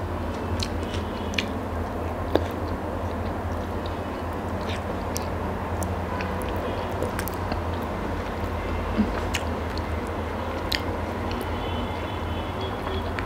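Fingers squish and mix rice and curry on a plate.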